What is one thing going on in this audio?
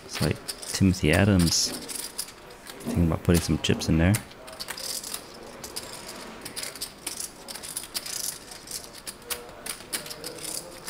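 Poker chips click and clatter on a table.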